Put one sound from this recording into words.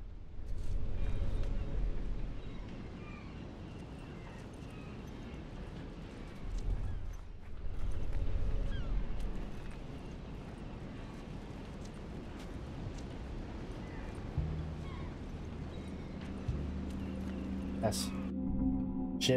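Footsteps crunch softly on gritty ground.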